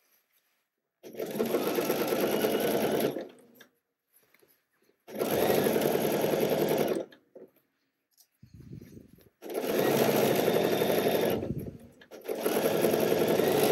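A sewing machine stitches in short, steady bursts.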